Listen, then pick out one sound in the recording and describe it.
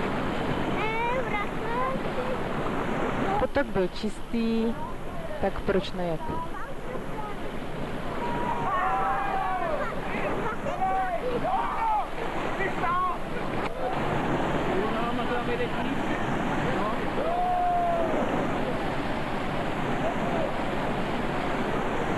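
Water roars and churns as it pours through a weir.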